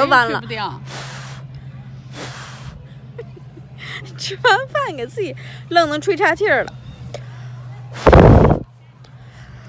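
A young woman blows hard on a dandelion.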